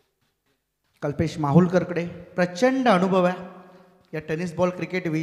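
A man commentates with animation through a microphone.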